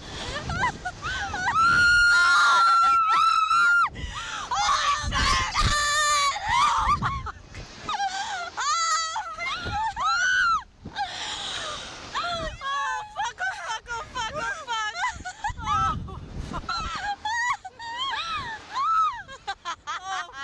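A young woman laughs loudly.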